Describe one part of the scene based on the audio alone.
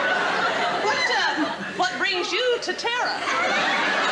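A woman speaks theatrically.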